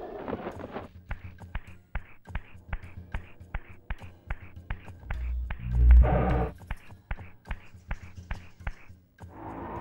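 Footsteps tap steadily on a hard stone floor, echoing in a large hall.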